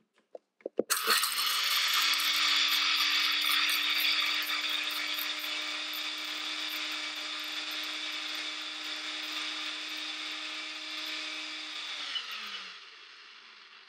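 A blender motor whirs loudly, grinding dry spices, then winds down.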